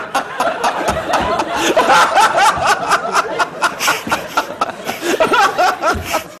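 A studio audience applauds loudly.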